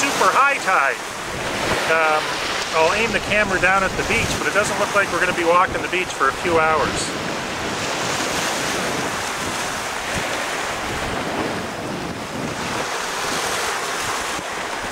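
Wind blows steadily across the microphone.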